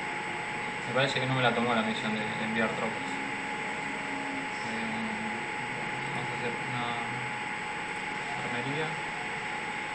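A young man speaks casually into a nearby microphone.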